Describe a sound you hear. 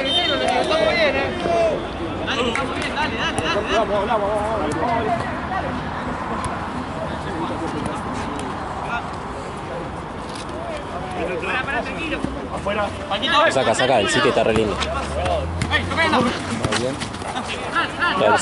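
A football is kicked with a thud.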